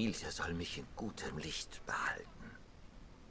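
An elderly man speaks slowly and wearily, close by.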